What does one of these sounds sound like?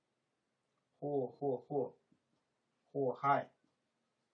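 A man speaks calmly and closely into a microphone, in short bursts.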